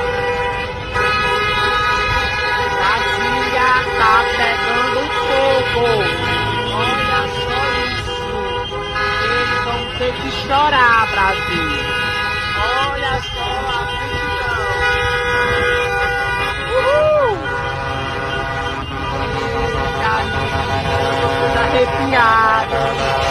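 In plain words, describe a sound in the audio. Car engines hum in slow traffic outdoors.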